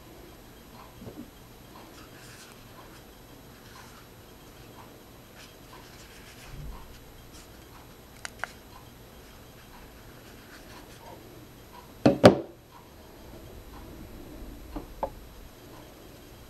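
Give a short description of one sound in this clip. Small plastic devices knock and clatter as they are handled.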